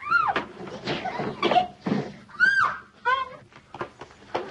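Women cry out and shout in a scuffle.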